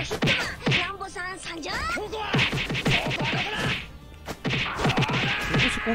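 Punches and blows land with sharp thuds in quick succession.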